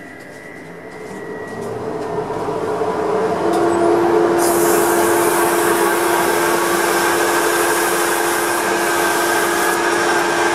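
A lathe motor spins up and then hums steadily.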